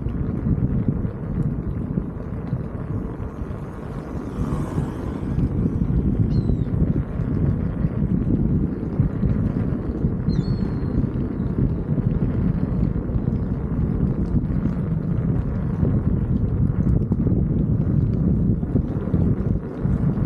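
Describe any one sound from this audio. Small wheels roll and rumble over wooden boards.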